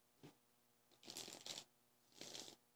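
A young woman whispers breathily, close to a microphone.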